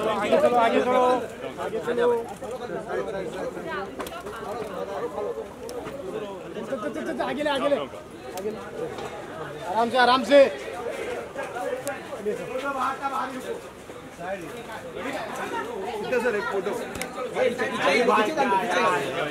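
A crowd of men talk and call out around the recorder outdoors.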